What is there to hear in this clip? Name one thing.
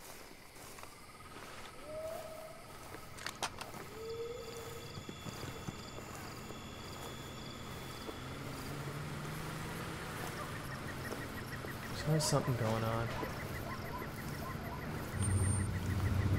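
Dry grass rustles under footsteps.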